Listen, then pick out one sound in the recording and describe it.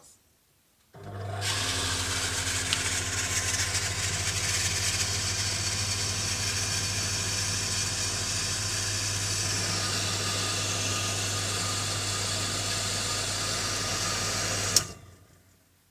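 A water pump motor hums and whirs loudly, then cuts off abruptly.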